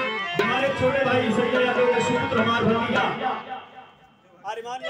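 A man sings through a microphone and loudspeakers.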